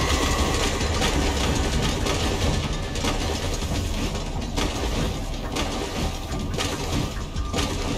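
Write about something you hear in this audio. Water splashes loudly as a figure runs through it.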